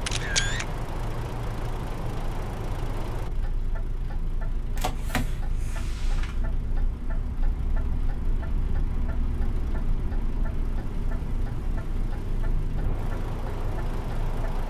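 A truck's diesel engine idles with a low, steady rumble.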